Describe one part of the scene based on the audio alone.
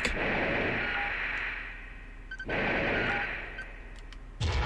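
A robot's jet thrusters roar in loud hissing bursts.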